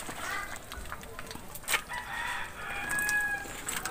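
Soup splashes as it is poured into a plastic bowl.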